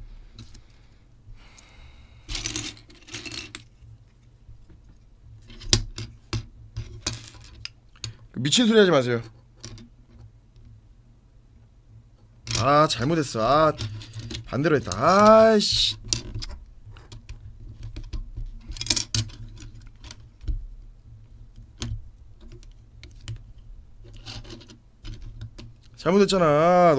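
Plastic toy bricks click and rattle as they are handled.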